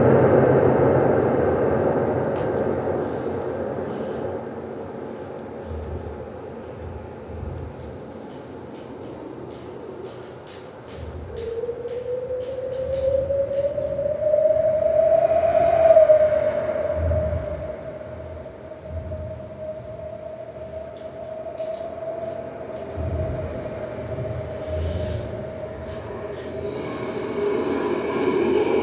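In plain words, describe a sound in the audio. Electronic music with a slowly rising, droning tone plays through loudspeakers in a large room.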